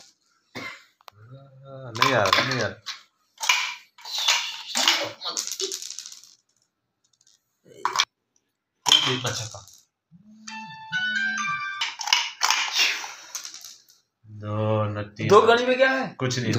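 Small dice clatter on a hard floor.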